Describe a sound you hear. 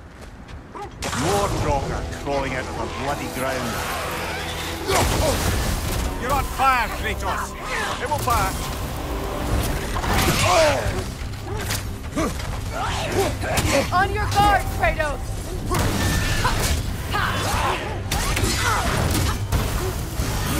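Weapons clash and thud in a loud, busy fight.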